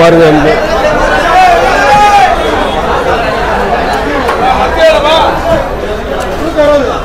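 A crowd of men and women chatter loudly all around, close by.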